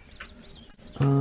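A young man speaks into a close microphone.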